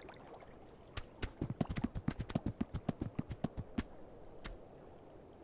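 A goose's feet patter quickly on a hard path.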